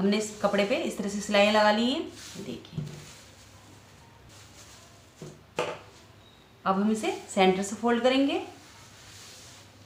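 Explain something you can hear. Cloth rustles softly as it is folded and smoothed.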